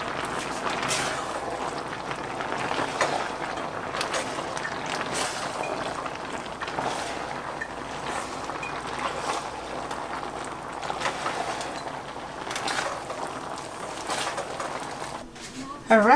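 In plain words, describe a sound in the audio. A spoon scrapes and stirs food in a metal pan.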